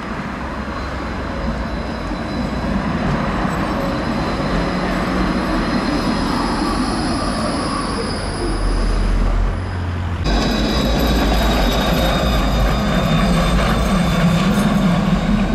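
A tram rumbles along its rails as it draws near and passes close by.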